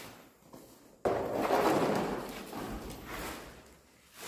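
A broom sweeps across a concrete floor.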